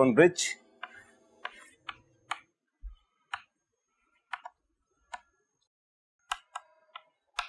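Chalk taps and scrapes on a blackboard in short strokes.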